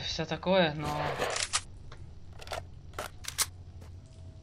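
A rifle clicks and rattles as it is readied.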